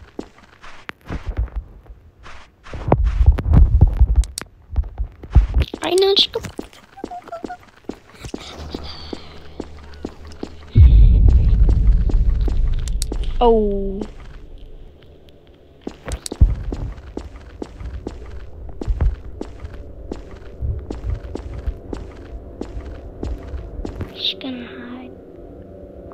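Footsteps thud steadily across a hard floor.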